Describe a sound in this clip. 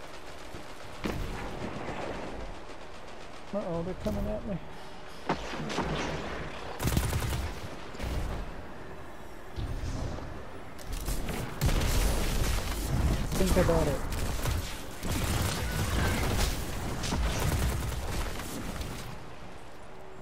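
Gunshots and energy blasts ring out in bursts.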